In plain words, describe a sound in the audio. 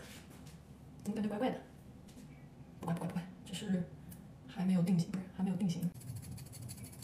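A young woman talks quietly and casually, close by.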